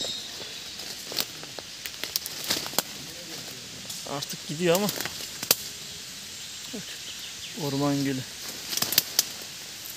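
Leafy branches brush and swish against someone walking past.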